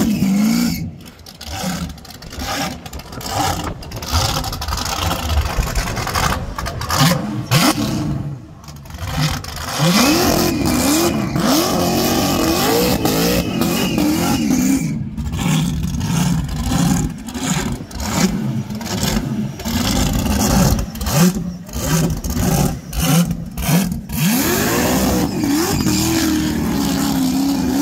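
Tyres screech as a car spins its wheels on asphalt.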